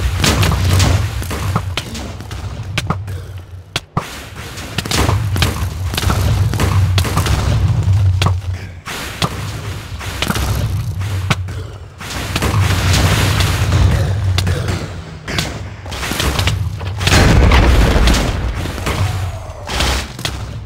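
Game explosions burst and rumble repeatedly.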